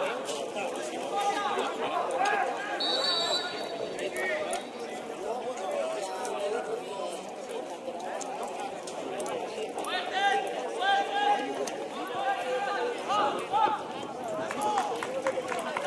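Men talk and call out outdoors, some close by and some across the field.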